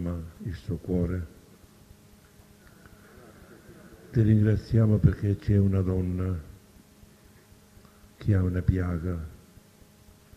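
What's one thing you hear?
An elderly man speaks slowly and calmly through a microphone, with long pauses.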